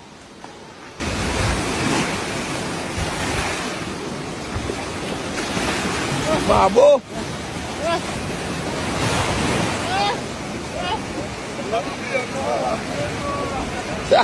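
Waves wash and splash over the shore.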